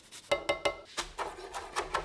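Chopped herbs patter onto a plate.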